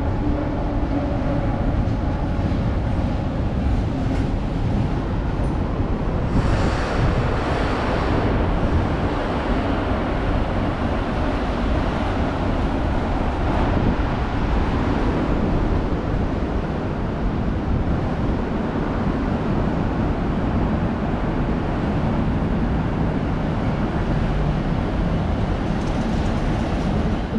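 A container freight train rolls past close by, its wheels rumbling and clattering on the rails.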